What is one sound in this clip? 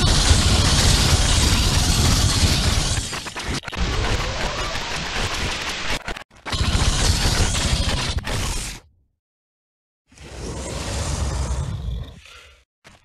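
Loud battle noise of a fight rumbles and crackles.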